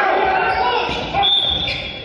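A volleyball is spiked with a sharp slap.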